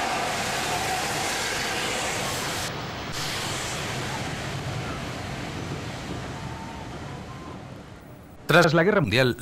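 Carriages rumble and clatter along the rails, slowly fading.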